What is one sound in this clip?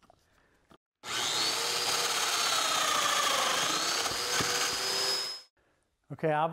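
An electric router whines loudly as it cuts wood.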